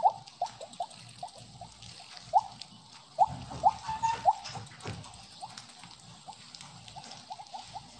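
Short rising electronic blips chime rapidly and repeatedly.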